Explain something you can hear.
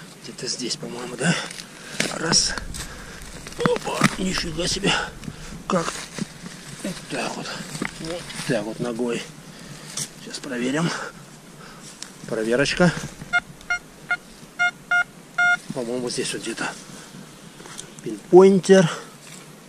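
A trowel digs and scrapes into soil.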